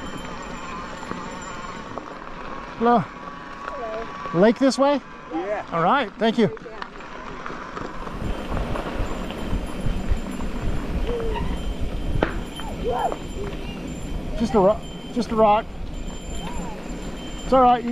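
Bicycle tyres crunch and roll over gravel.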